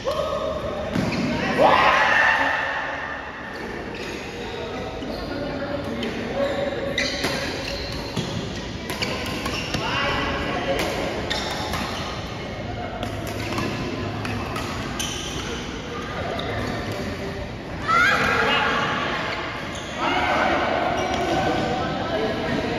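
Young men call out to each other in an echoing indoor hall.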